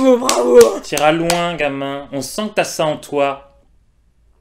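A man sings in a high, drawn-out voice close by.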